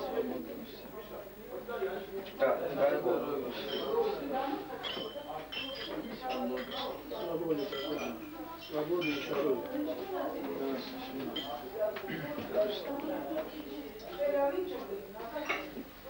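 Several men talk over one another.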